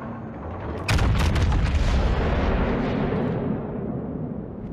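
Heavy naval guns fire with deep booming blasts.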